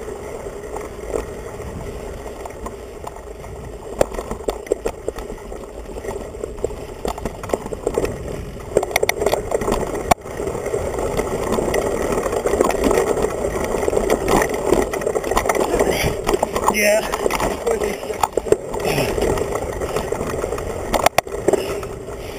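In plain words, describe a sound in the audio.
Mountain bike tyres roll and crunch over a dirt trail.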